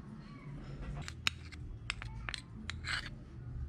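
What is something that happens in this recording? A metal spoon clinks against a ceramic bowl.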